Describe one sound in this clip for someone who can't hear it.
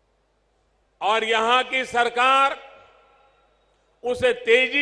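An elderly man speaks forcefully into a microphone, heard through loudspeakers with echo.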